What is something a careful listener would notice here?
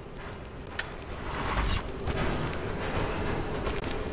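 A campfire crackles.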